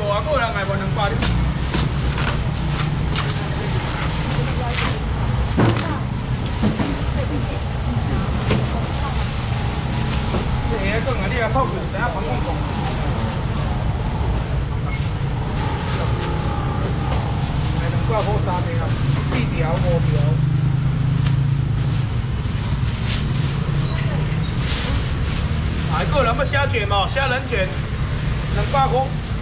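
A steady low hum and crowd murmur carry on in the background.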